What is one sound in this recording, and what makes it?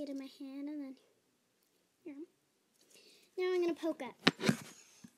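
A young girl speaks close to the microphone.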